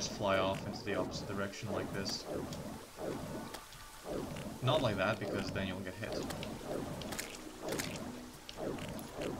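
Video game magic bolts zap and burst in quick succession.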